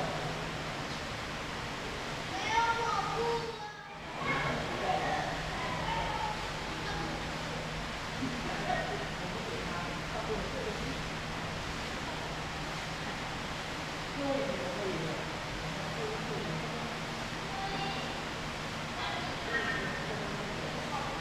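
Men talk quietly at a distance in a large echoing room.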